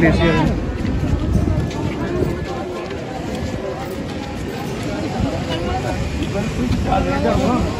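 Footsteps crunch and scuff on wet, gritty snow.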